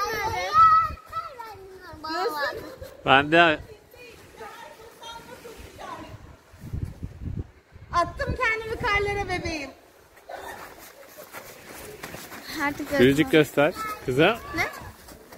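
A young girl shouts and squeals excitedly close by.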